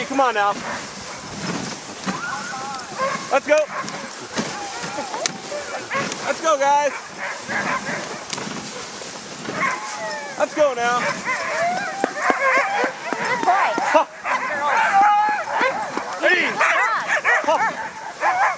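Dogs yelp and howl excitedly.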